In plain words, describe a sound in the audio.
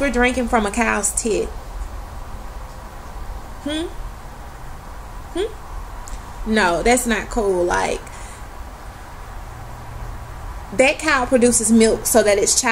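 A young woman talks expressively and close, in bursts with pauses, heard through a laptop microphone.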